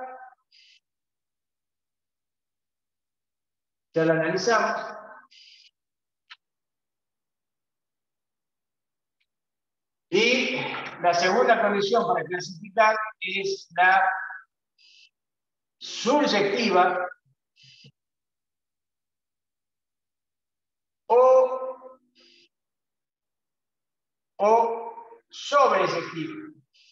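An older man speaks calmly in short bursts, close by, with pauses between phrases.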